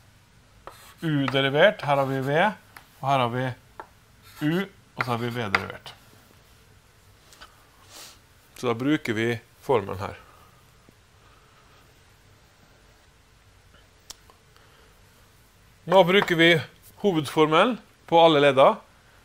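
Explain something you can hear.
A man talks calmly and clearly into a close microphone, explaining.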